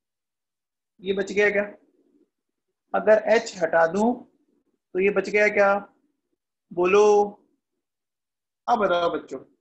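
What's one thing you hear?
A man speaks calmly in short phrases through a microphone, with pauses between them.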